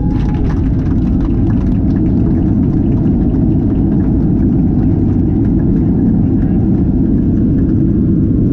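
Jet engines roar loudly and steadily as an airliner speeds down a runway.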